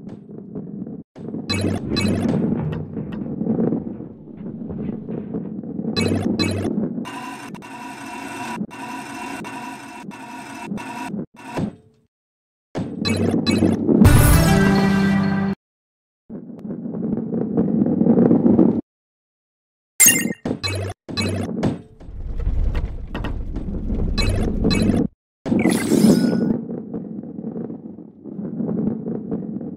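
A ball rolls with a low, steady rumble.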